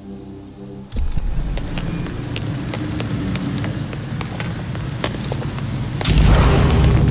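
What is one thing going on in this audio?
Footsteps run on wet stone.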